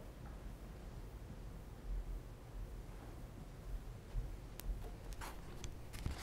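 Footsteps tap on the floor.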